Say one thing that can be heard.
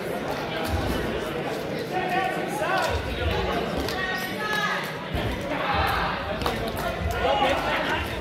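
A crowd of men and women shout and chatter in a large echoing hall.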